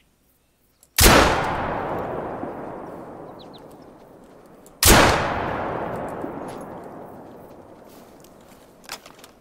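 A rifle fires two loud shots, each echoing and slowly rolling away.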